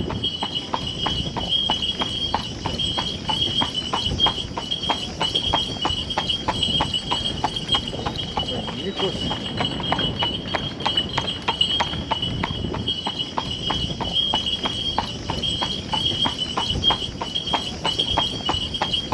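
A horse's hooves clop steadily on pavement.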